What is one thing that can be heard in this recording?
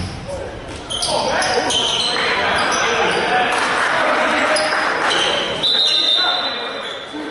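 A crowd of spectators cheers and shouts from the stands.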